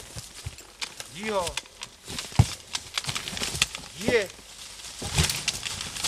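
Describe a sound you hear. A horse's hooves rustle through dense undergrowth.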